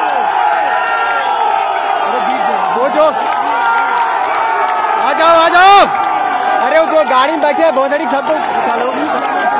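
A man nearby shouts over the crowd.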